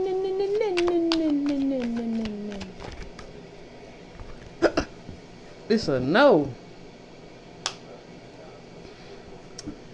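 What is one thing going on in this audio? Cards rustle and tap as a hand handles them.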